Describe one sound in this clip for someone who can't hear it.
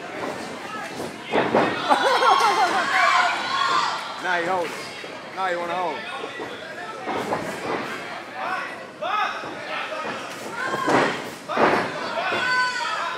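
A large crowd shouts and cheers in an echoing hall.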